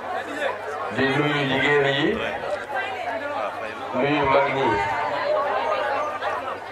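A man speaks with animation into a microphone, amplified over loudspeakers.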